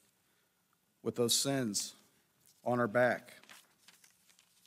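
A man speaks calmly through a microphone in short bursts.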